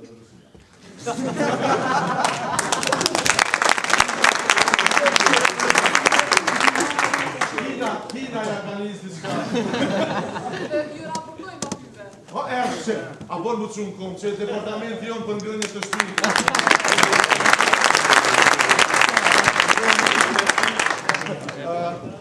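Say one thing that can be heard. An audience applauds and cheers loudly.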